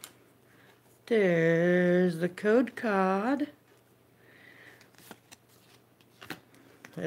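Trading cards rustle and slide between fingers.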